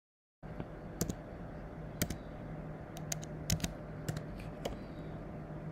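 Keyboard keys click in short bursts of typing.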